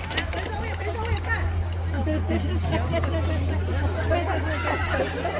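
Young children chatter and call out nearby outdoors.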